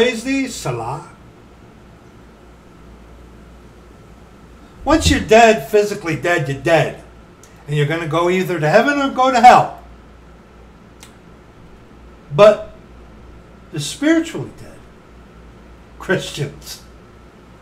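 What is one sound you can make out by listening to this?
A middle-aged man talks with animation, close to the microphone, in short bursts.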